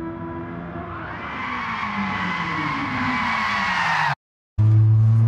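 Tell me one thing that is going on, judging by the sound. Tyres squeal as a sports car slides through a corner.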